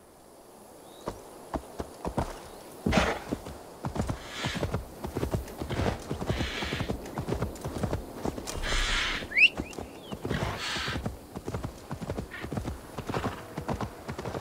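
Horse hooves thud rhythmically on soft ground.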